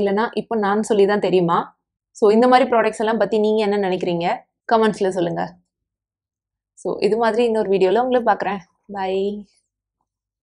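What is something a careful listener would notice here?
A young woman speaks calmly and cheerfully into a nearby microphone.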